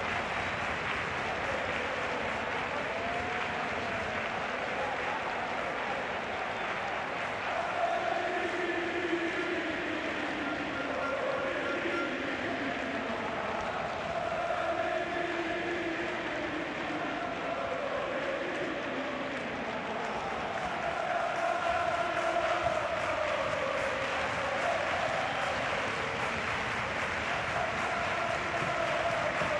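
A crowd claps in the stands.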